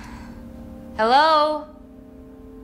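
A young woman calls out in a rising voice.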